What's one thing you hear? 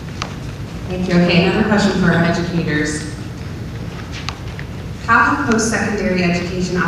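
A woman speaks into a microphone over loudspeakers in a large hall.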